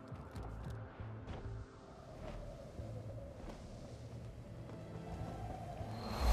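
Large wings whoosh and flutter in a glide.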